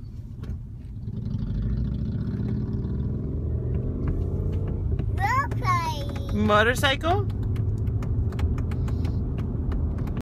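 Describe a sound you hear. A car engine hums.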